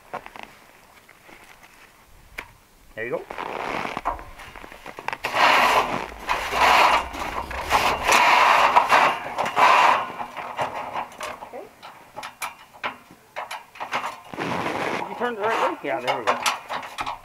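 Metal scaffolding clanks and rattles as it is handled.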